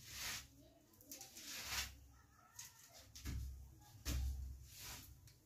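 Hands scrape against the top of a wooden door.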